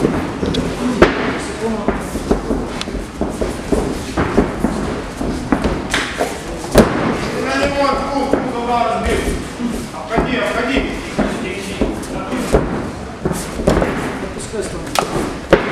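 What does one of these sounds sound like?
Gloved punches land on a body with sharp thuds.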